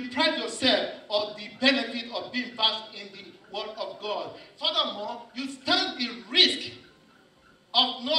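A man preaches forcefully into a headset microphone.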